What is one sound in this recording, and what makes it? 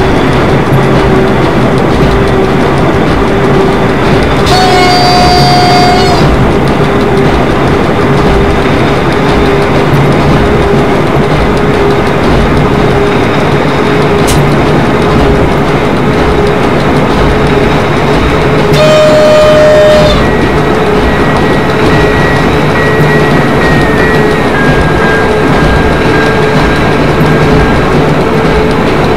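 An electric train rumbles steadily along the track.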